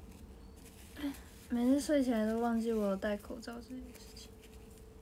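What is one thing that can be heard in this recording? A young girl speaks briefly in a high, sing-song voice close by.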